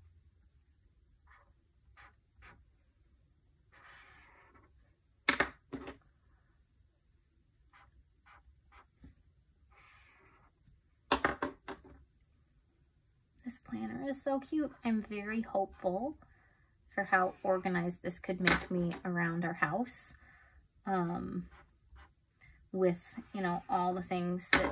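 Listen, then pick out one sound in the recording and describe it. A marker pen scratches softly across paper.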